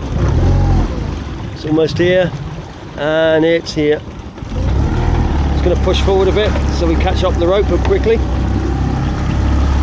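Sea water laps against a small boat's hull.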